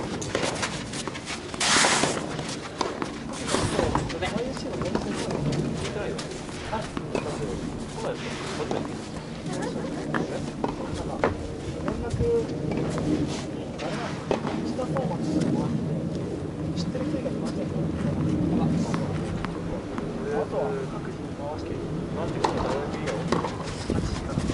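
A tennis ball bounces on the court.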